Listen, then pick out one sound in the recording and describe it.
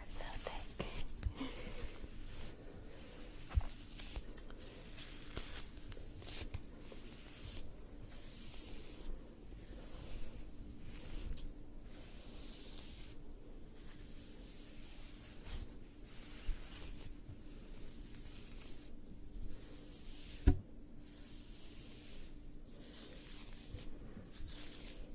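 A brush swishes through long hair close by, in repeated strokes.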